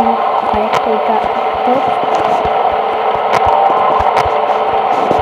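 Short electronic clicks sound as a monitor view switches.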